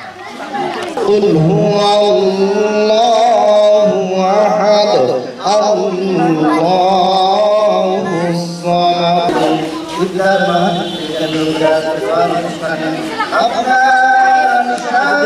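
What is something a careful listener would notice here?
An elderly man chants a prayer into a microphone, heard through a loudspeaker.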